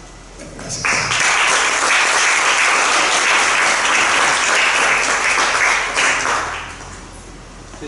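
An audience applauds in a room.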